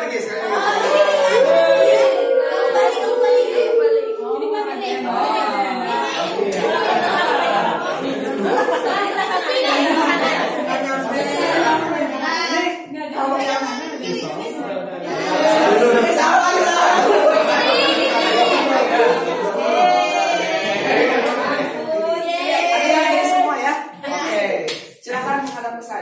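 A group of women chat and laugh loudly together in an echoing room.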